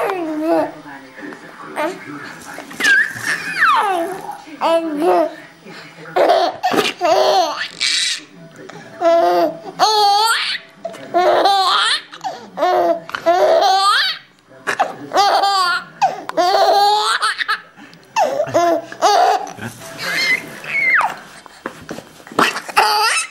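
A baby coos and babbles happily up close.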